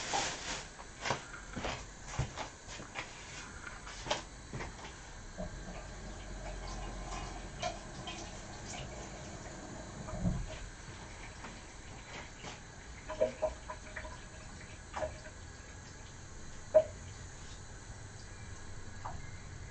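Dishes and utensils clink and clatter.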